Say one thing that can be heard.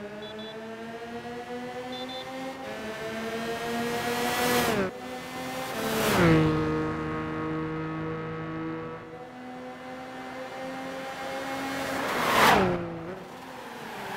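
Racing car engines whine at high speed, rising in pitch as they approach.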